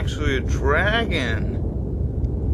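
A monster lets out a warbling, growling roar.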